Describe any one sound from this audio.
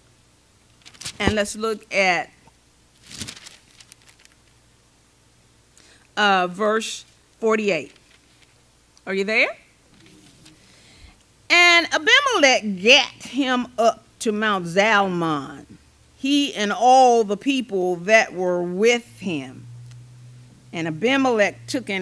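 An elderly woman speaks slowly and with feeling through a microphone.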